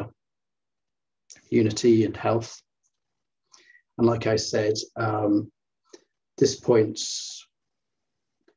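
A man speaks calmly and closely through a microphone, in short phrases with pauses.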